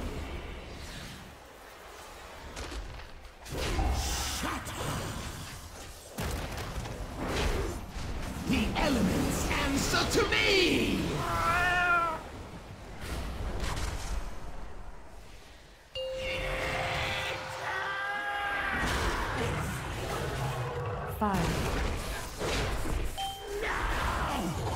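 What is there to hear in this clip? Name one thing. Magic spells whoosh, crackle and boom in a fantasy game battle.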